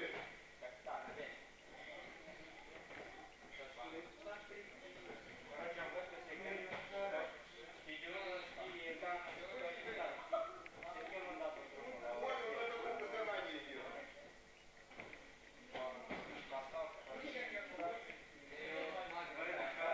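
Several young men talk and call out in a large echoing hall.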